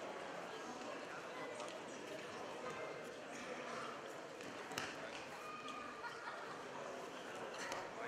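A large crowd murmurs and shouts in a big echoing hall.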